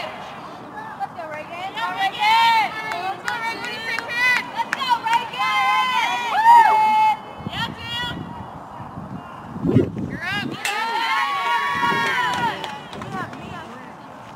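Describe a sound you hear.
Players shout and chant cheers from across the field.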